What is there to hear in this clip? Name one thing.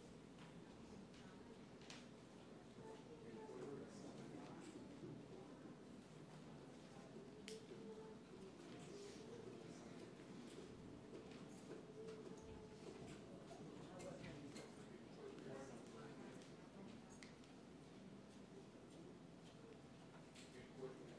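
A crowd of people murmur quietly in a large echoing hall.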